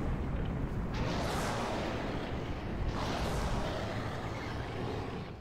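A huge creature roars loudly.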